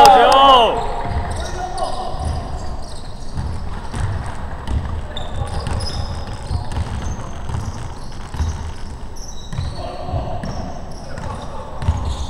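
A basketball is dribbled on a hardwood floor.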